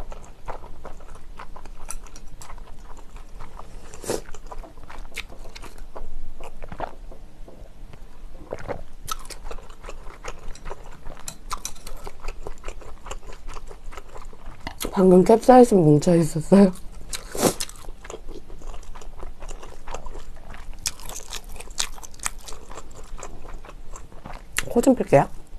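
A young woman chews food close to a microphone.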